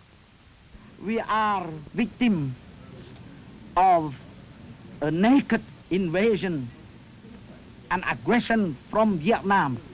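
A middle-aged man speaks slowly and deliberately, close by.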